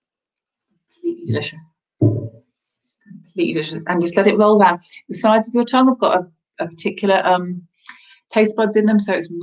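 A woman speaks calmly and close up, as over an online call.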